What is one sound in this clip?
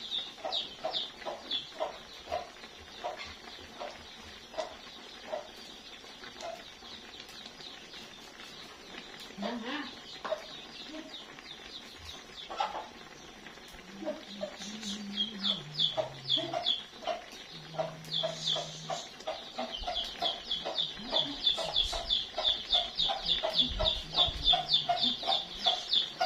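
Food sizzles and bubbles in a pan.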